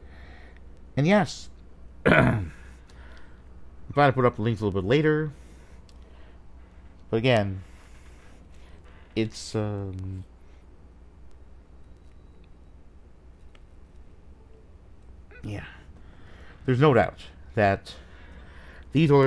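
A man speaks with animation close to the microphone, in short bursts with pauses.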